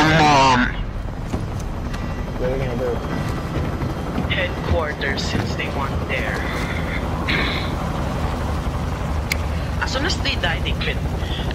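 A helicopter drones, heard from inside the cabin.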